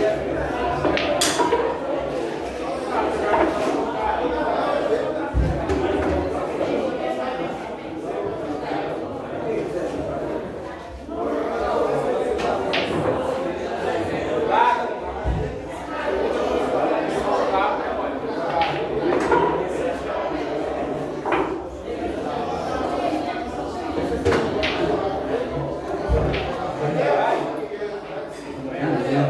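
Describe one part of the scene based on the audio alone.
Several men talk and chat loudly nearby.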